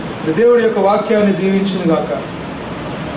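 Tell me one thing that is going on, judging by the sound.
A man reads aloud into a microphone.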